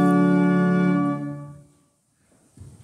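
A pipe organ holds a loud chord that fades away in an echoing hall.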